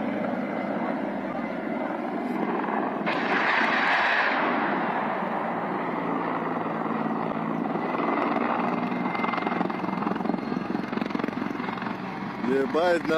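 A helicopter roars low overhead and slowly moves away.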